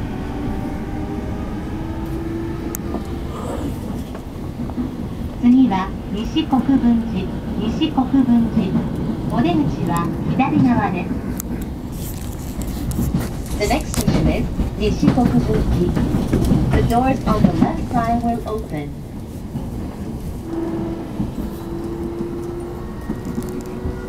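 A train's motor hums with a steady whine.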